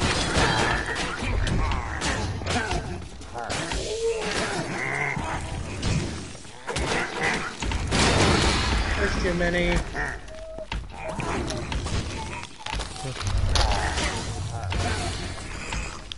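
Video game combat effects clash and crackle in bursts.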